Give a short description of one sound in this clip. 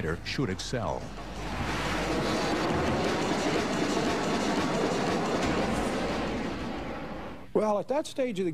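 A jet aircraft roars loudly as it flies past.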